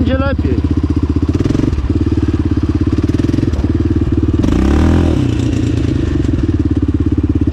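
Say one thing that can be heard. Tyres rumble over a bumpy dirt track.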